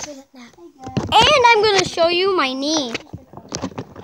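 A young boy talks close by, loudly and with animation.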